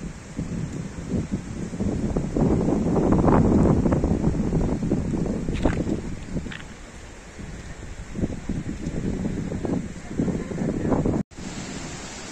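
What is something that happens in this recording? Wind gusts roar against the microphone outdoors.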